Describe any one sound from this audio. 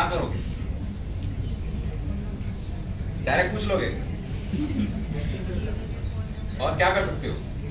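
A young man speaks calmly in short bursts with pauses.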